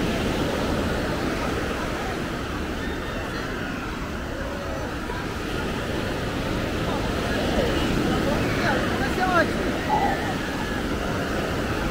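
Distant voices of a crowd chatter.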